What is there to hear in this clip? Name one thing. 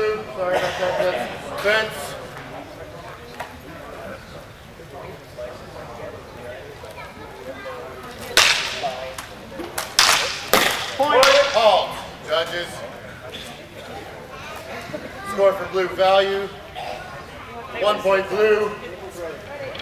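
A man calls out to fencers.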